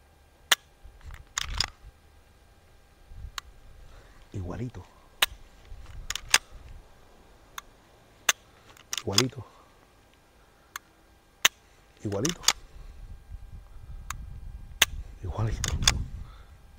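A rifle's parts click and snap as they are handled.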